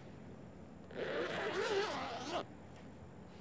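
A zipper rasps open on a bag.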